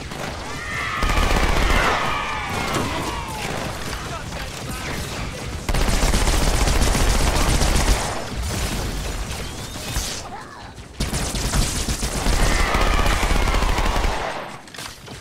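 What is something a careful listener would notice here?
Energy blasts explode with loud crackling bangs.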